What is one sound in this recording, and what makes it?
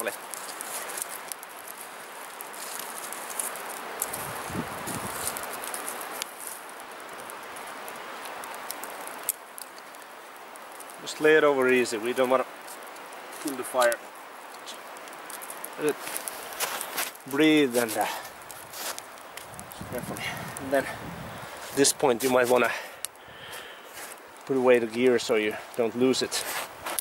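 A small fire of twigs crackles and pops.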